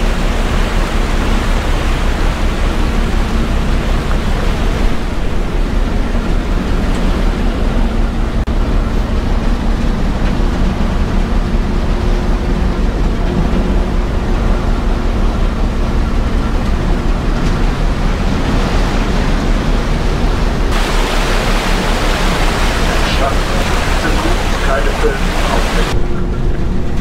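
Water rushes and churns in a boat's wake.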